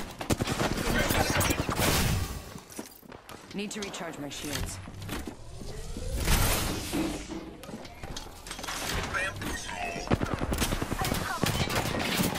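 A heavy metal door slides and clanks shut.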